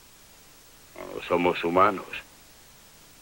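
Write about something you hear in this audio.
An older man answers in a calm, serious voice close by.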